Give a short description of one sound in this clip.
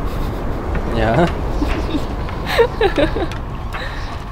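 A small animal yelps and cries.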